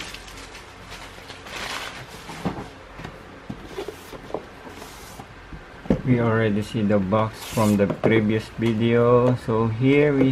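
A cardboard box slides and taps softly as hands handle it.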